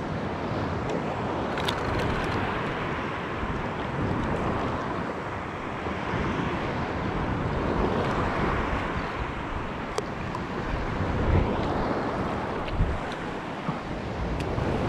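Shallow water laps and splashes gently.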